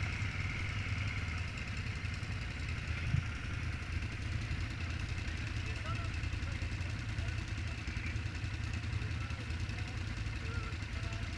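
Quad bike engines idle and rumble steadily nearby.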